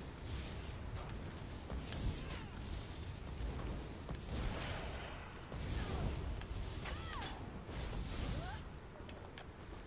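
Magic spells crackle and zap in a game battle.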